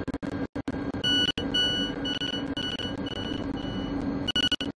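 Train doors open with a chime.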